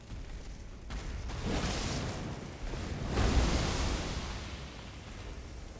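Fiery blasts burst with a loud rumble.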